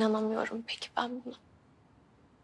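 A young woman speaks nearby, pleading emotionally.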